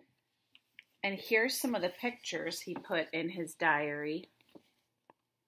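A woman speaks close by, calmly reading out.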